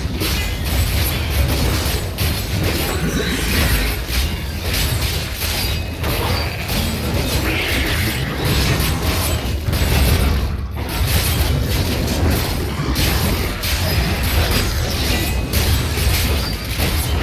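Game combat sounds of spells and hits clash loudly and constantly.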